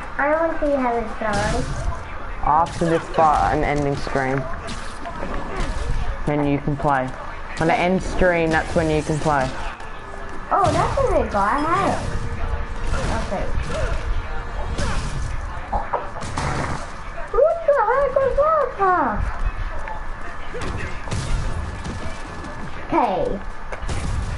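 Punches land with heavy thuds during a fight.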